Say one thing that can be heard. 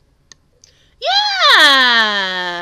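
A young woman sings a long, loud note close to a microphone, her voice rising and then sliding down.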